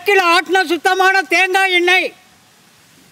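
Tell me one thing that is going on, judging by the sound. An elderly man calls out loudly in a drawn-out voice close by.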